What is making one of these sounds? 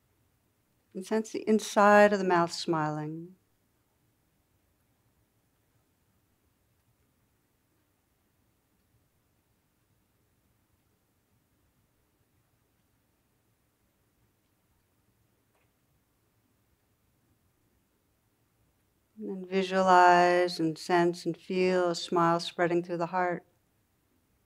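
A cardinal sings clear whistled notes.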